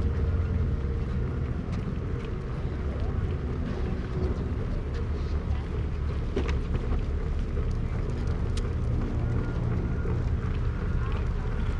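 Footsteps tap on pavement outdoors.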